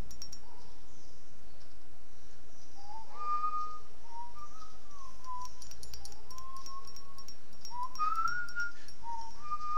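A spoon clinks against a cup while stirring.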